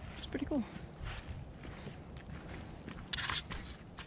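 Dry leaves crunch underfoot as someone walks.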